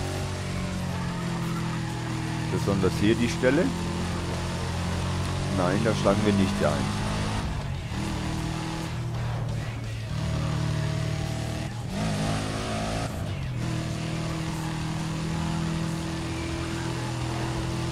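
A racing car engine roars steadily at high speed, shifting gears now and then.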